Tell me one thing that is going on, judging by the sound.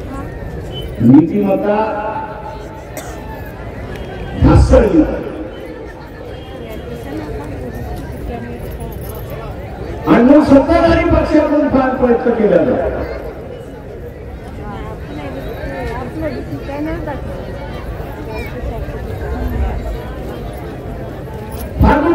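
An elderly man speaks forcefully through a loudspeaker, echoing outdoors.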